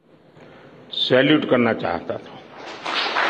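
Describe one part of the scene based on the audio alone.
An elderly man speaks slowly and with emotion into a microphone, with pauses.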